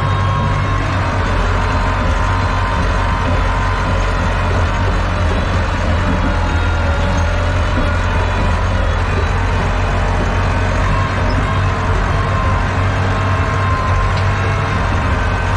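A diesel tractor engine drones under load, heard from inside the cab.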